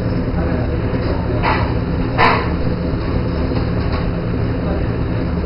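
An extractor hood hums steadily.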